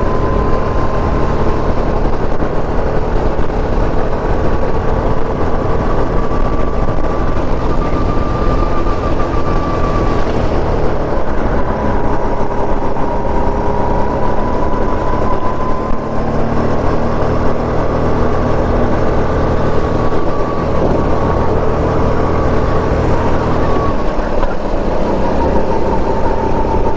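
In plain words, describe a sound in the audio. A small kart engine buzzes loudly up close, its pitch rising and falling with speed.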